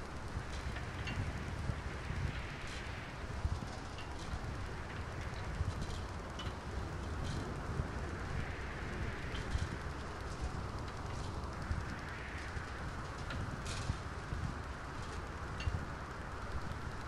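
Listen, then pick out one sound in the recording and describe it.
Metal parts clank and clatter now and then.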